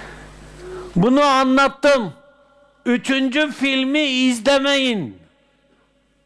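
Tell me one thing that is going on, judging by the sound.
An elderly man speaks with animation, close to a microphone.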